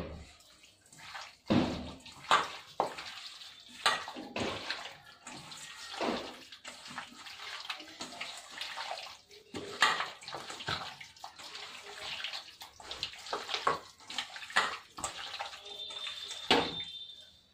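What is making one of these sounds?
A metal bowl clinks and scrapes as food is mixed in it.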